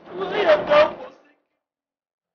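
A man cries out in anguish close by.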